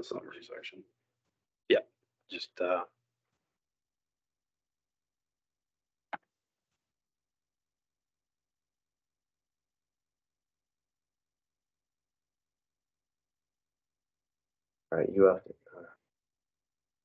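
A woman speaks briefly in short bursts over an online call.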